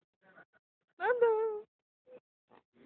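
A young child squeals and laughs.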